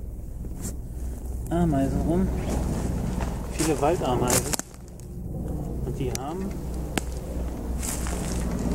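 Footsteps crunch on dry leaves and pine needles.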